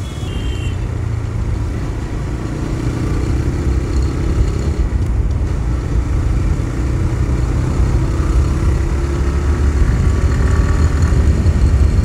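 Wind rumbles against the rider, growing stronger as the speed rises.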